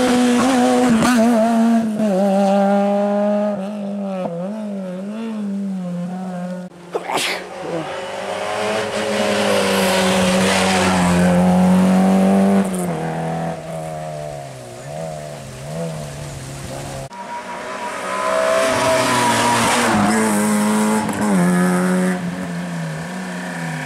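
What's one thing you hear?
A rally car engine revs hard, rising and falling in pitch as it shifts gears.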